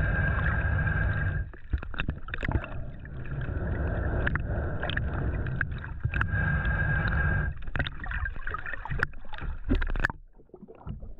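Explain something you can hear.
Water swirls and rumbles, heard muffled from underwater.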